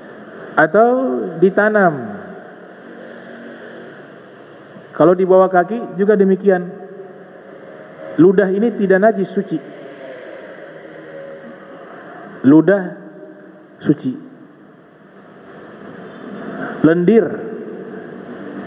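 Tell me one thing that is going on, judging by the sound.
A young man speaks calmly into a microphone in a reverberant room, with pauses between phrases.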